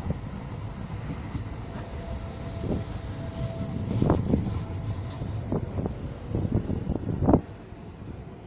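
A train rumbles slowly along beside a platform.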